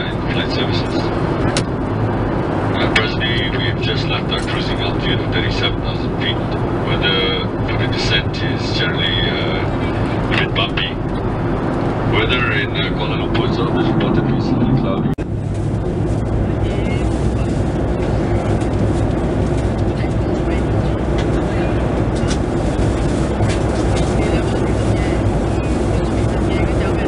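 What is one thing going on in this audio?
A jet engine drones with a steady low roar inside an aircraft cabin.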